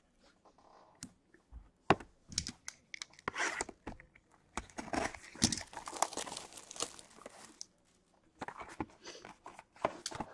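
Cardboard boxes knock and slide against each other.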